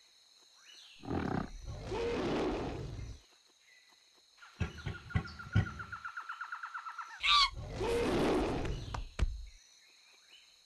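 An ape grunts and roars loudly in bursts.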